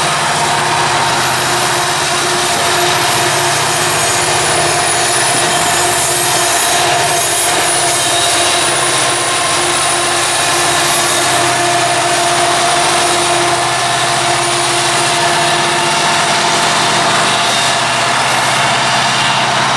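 Diesel-electric freight locomotives rumble under load as they haul a coal train.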